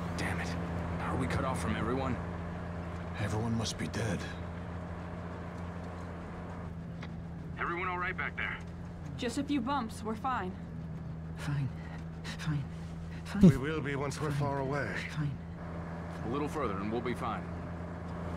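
A man talks tensely.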